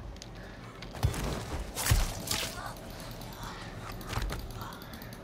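A blade strikes with sharp, heavy thuds.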